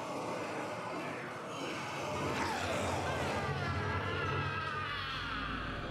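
A man cries out in fear.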